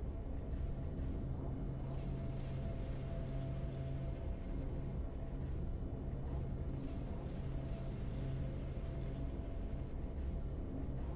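Triumphant music plays.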